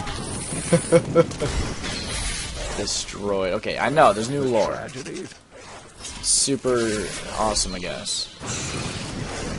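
Spells and weapons blast and crackle in a game fight.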